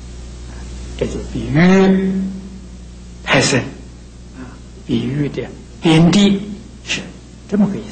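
An elderly man speaks calmly and slowly into a microphone, with pauses between phrases.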